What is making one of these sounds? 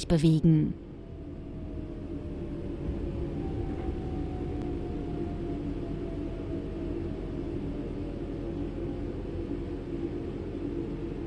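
A train's motor whine slowly falls in pitch as the train slows down.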